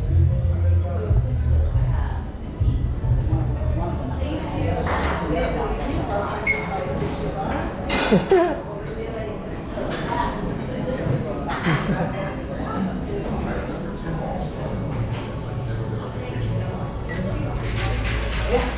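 Many people chatter in a busy room.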